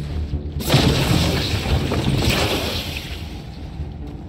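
A creature's body bursts apart with a loud crackling rush that fades away.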